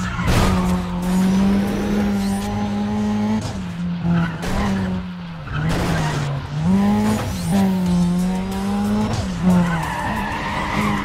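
A car engine roars at high revs, dropping and climbing in pitch as the gears change.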